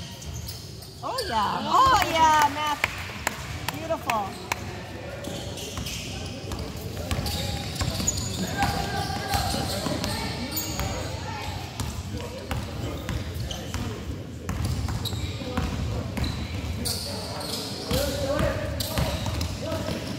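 Young players shout to each other in an echoing hall.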